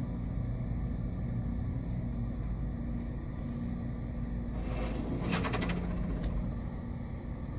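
Water sprays and drips against a car windshield.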